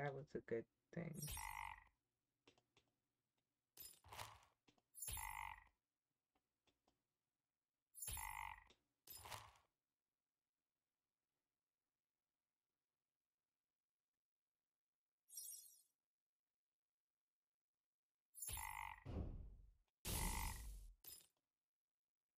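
Short game sound effects chime and whoosh now and then.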